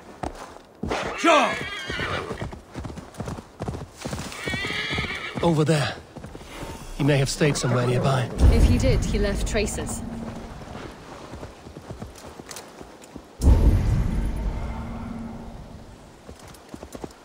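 A horse trots, its hooves thudding on the ground.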